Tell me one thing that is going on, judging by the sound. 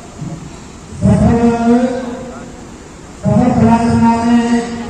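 A man chants in a steady, drawn-out voice through a microphone.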